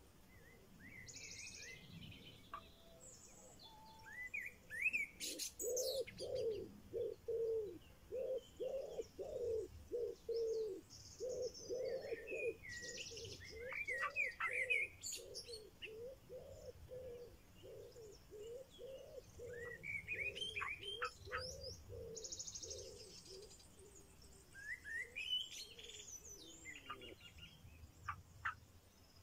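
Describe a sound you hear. Baby birds cheep in quick, repeated calls.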